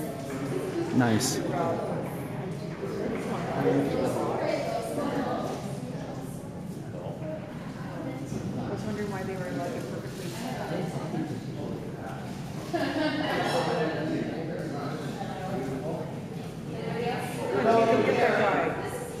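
Young players chatter and shout nearby in a large echoing rink.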